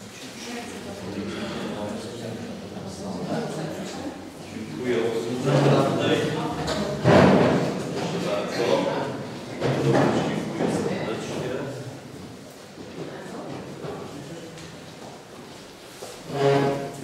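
Men and women talk and murmur nearby in a slightly echoing room.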